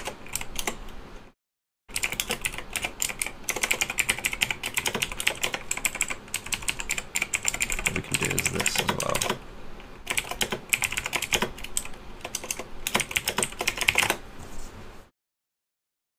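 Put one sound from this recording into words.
Keys clatter rapidly on a keyboard.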